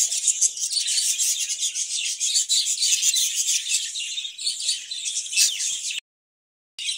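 Budgerigars chirp and chatter rapidly and continuously.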